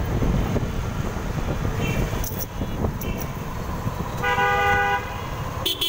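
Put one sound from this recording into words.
Small motorcycle engines hum just ahead in traffic.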